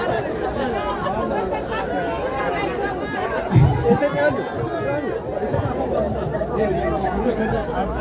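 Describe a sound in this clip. A man speaks loudly through a megaphone outdoors.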